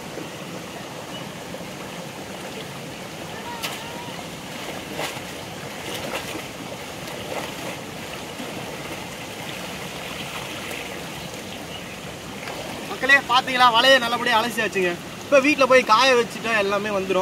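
A shallow stream rushes and babbles over rocks.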